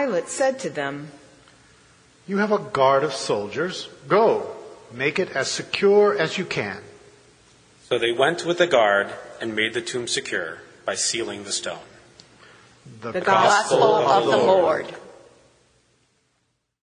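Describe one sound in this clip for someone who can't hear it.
A man reads aloud through a microphone in an echoing hall.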